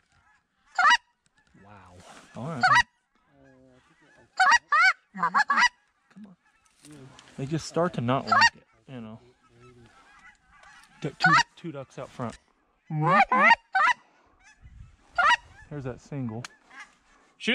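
A man blows a duck call in loud quacking bursts close by.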